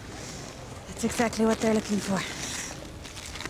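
A young woman speaks softly and warmly, close by.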